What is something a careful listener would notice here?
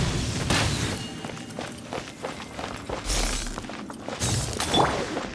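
Magical wind blasts whoosh and swirl in bursts.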